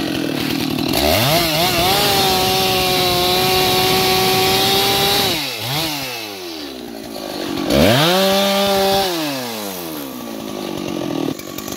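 A chainsaw engine revs loudly, rising and falling in pitch.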